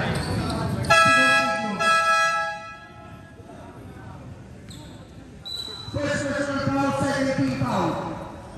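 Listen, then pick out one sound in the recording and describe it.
A crowd of spectators cheers and shouts loudly in an echoing hall.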